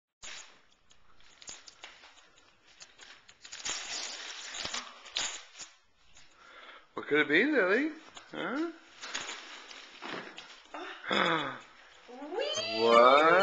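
Wrapping paper rustles and crinkles close by.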